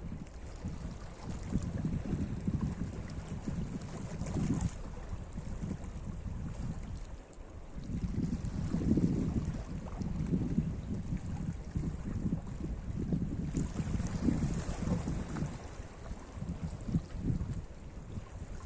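Small waves lap gently against rocks.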